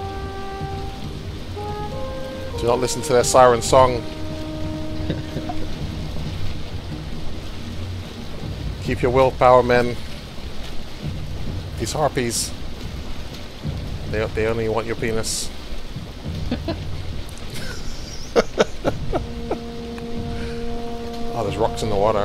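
Wind blows hard over open water.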